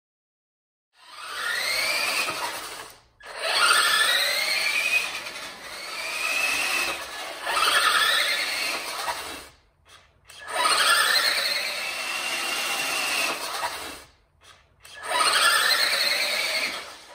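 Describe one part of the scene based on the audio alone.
Small plastic tyres rumble on a hard floor.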